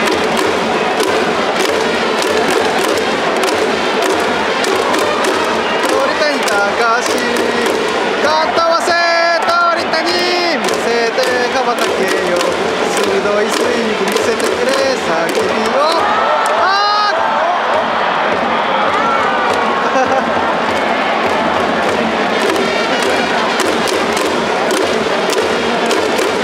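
A large stadium crowd chants and cheers steadily throughout.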